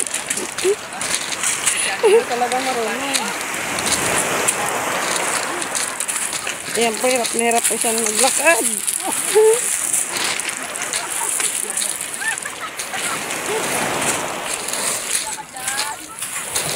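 Waves wash onto a pebbly shore.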